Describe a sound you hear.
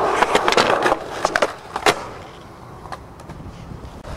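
A skateboard clacks sharply on landing.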